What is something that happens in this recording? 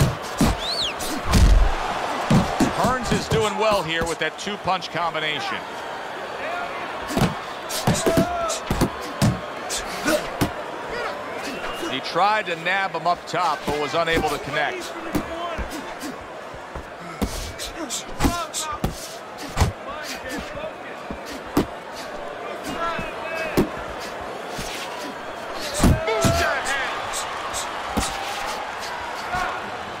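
A large crowd murmurs and cheers in a big arena.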